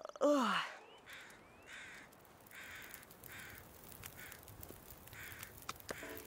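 A campfire crackles as it catches.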